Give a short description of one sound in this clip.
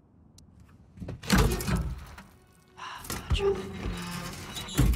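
A heavy metal safe door creaks open.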